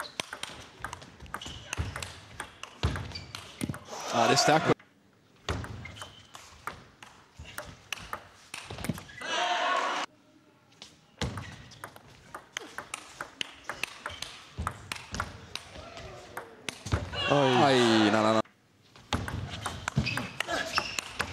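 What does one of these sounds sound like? A table tennis ball clicks back and forth against paddles and the table.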